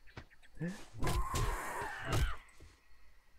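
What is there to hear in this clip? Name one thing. A club strikes a vulture with heavy, wet thuds.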